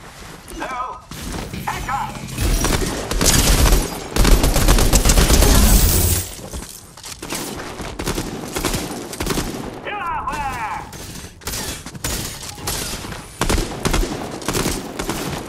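Rapid gunshots crack repeatedly.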